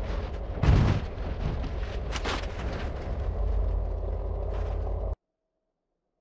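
A bus engine roars loudly.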